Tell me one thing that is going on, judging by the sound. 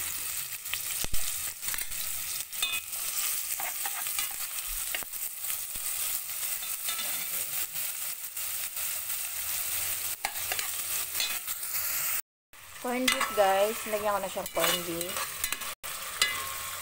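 Onions sizzle in hot oil.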